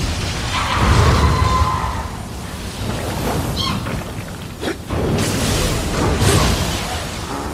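A magic blast whooshes and booms.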